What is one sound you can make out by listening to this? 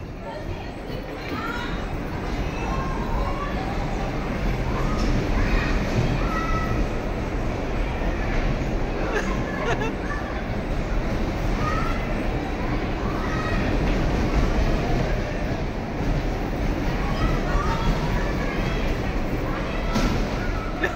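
Young girls chatter and shout excitedly nearby.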